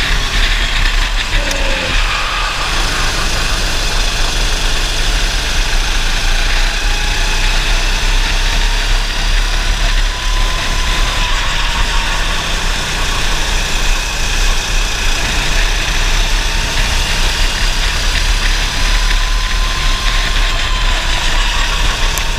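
A racing kart engine screams at full throttle, its pitch rising and falling through the corners.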